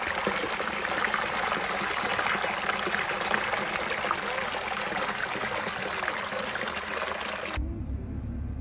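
Water pours and splashes steadily over stone close by.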